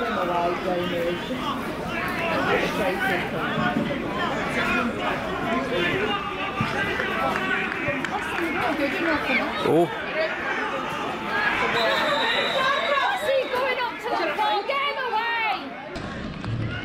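A crowd of men shouts and jeers loudly outdoors in the distance.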